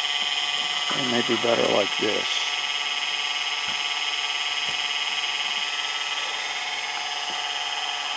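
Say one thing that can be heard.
A motor drive whines steadily with a high electrical tone.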